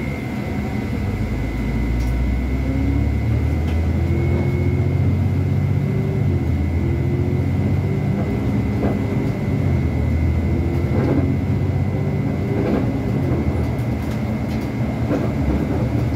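A bus engine revs up and whines as the bus pulls away and gathers speed.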